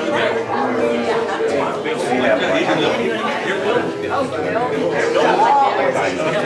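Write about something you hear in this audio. Many men and women chat at once in a room that echoes a little.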